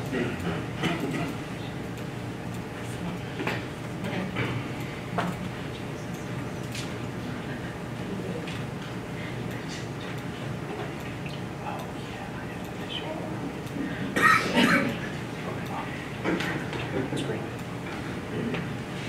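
A man lectures calmly in a large room, heard through a microphone.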